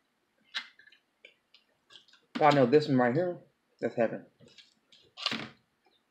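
A woman chews food with soft, wet sounds.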